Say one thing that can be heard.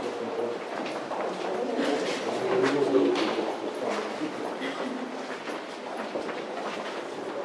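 A crowd of people chatters in an echoing tunnel.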